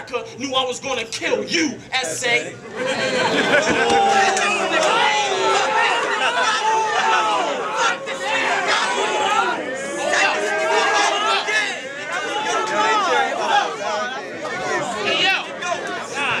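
A young man raps forcefully into a microphone.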